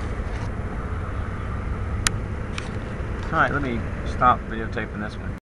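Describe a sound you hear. A car engine idles with a low, steady rumble.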